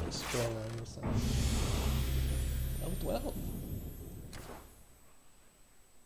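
A dramatic game jingle with a rumbling whoosh plays.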